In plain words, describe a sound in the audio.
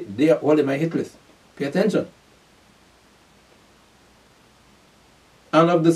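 A man speaks calmly and closely into a microphone, with pauses.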